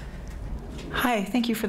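A young woman speaks cheerfully into a microphone.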